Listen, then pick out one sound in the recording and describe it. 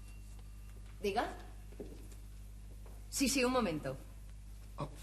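A young woman speaks into a telephone.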